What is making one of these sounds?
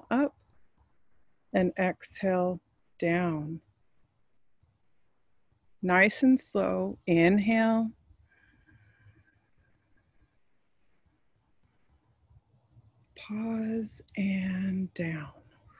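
A woman speaks calmly and slowly, close to the microphone, with pauses between phrases.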